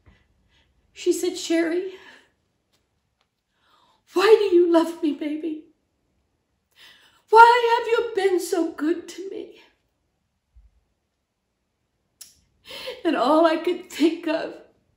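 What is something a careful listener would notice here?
A middle-aged woman speaks tearfully and haltingly, close up.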